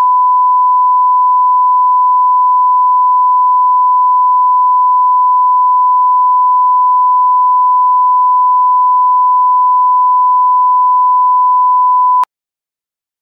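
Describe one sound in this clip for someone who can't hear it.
A steady, high test tone sounds without a break, then cuts off abruptly.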